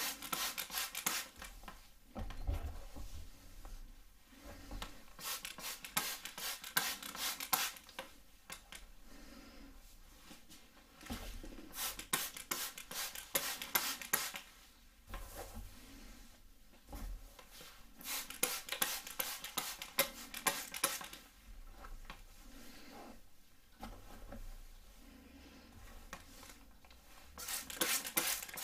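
A comb brushes through hair with a soft crackle.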